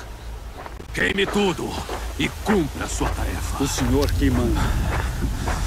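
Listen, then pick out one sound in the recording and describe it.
A man speaks in a low, menacing voice close by.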